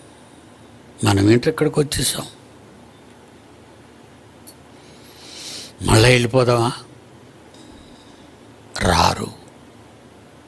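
An elderly man speaks slowly into a close microphone in short bursts with pauses.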